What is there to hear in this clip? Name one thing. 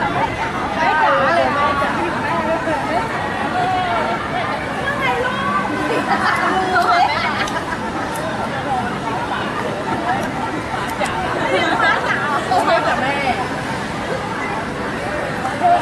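A crowd of young people chatters and calls out nearby.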